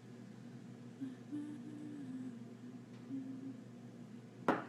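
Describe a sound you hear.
A young woman speaks briefly and softly, close by.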